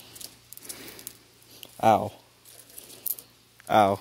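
Leafy branches rustle as a hand pulls on them.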